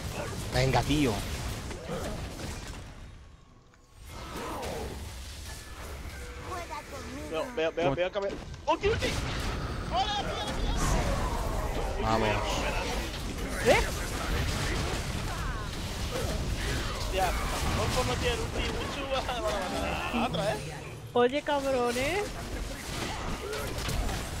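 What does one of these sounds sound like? Game sound effects of spells and hits crackle and whoosh.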